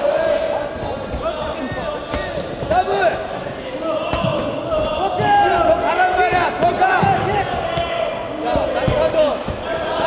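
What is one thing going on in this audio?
Boxing gloves thud against a fighter's body and head.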